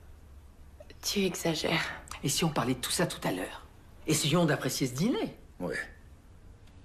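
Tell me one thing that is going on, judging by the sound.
A middle-aged woman speaks with animation nearby.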